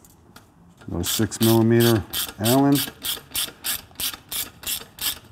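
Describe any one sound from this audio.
A ratchet wrench clicks in quick, repeated bursts.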